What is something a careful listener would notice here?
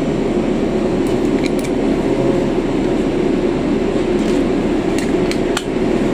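Loose fittings rattle and clink inside a moving bus.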